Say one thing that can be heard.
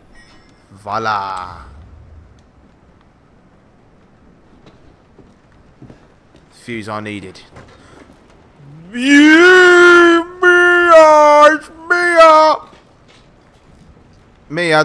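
A young man talks into a close microphone in short bursts, at times drawing out his words loudly.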